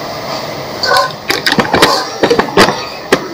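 A metal bowl clinks as a hand moves it.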